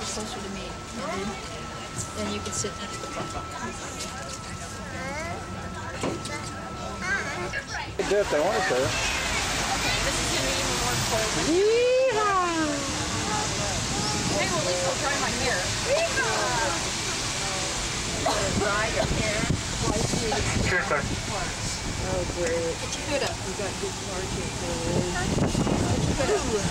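A crowd of men, women and children chatters nearby.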